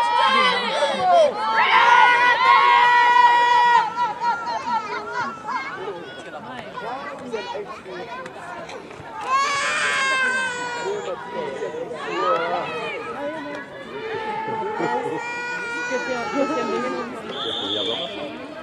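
Young women shout loudly to each other outdoors.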